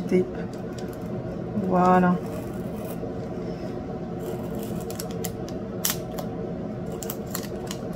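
Tiny plastic beads click softly as they are pressed into place.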